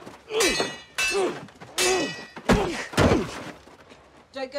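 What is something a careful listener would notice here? A young man grunts and cries out in pain as he is struck.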